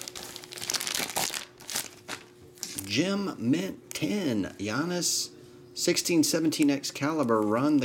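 Plastic wrapping crinkles and rustles between fingers.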